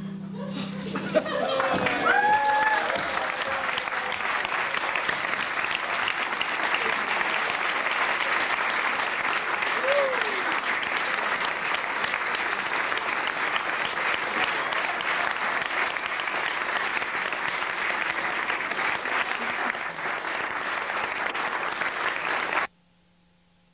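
A crowd applauds loudly and steadily in an echoing hall.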